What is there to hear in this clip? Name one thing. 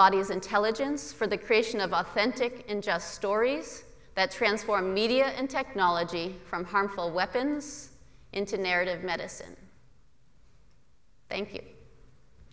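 A middle-aged woman speaks calmly into a microphone in a large hall.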